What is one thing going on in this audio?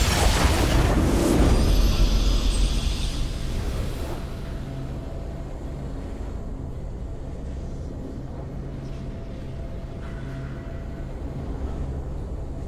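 A triumphant fanfare plays, then settles into a calm held chord.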